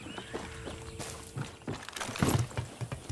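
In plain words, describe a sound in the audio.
Hands and feet clank on a metal ladder.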